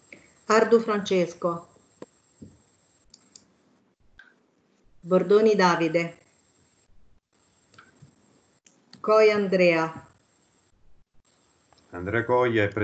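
A woman speaks in short phrases, heard through an online call.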